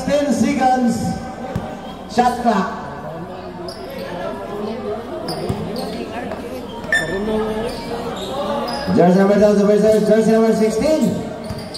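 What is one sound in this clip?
Spectators chatter and call out around an outdoor court.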